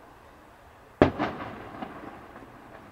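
A firework bursts far off with a sharp boom that echoes away.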